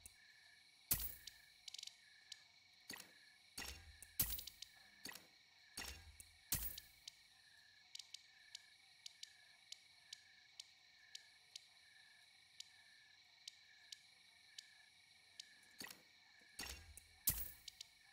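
Short electronic menu blips and chimes sound as items are sold in a game.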